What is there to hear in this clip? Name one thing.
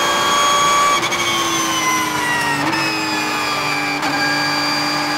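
Gears clunk as a racing car shifts down.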